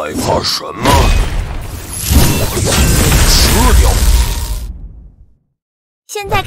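Lightning bursts crash with a loud, booming rumble.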